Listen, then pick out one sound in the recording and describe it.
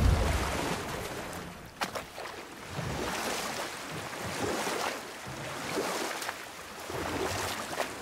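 Water rushes against a moving boat's hull.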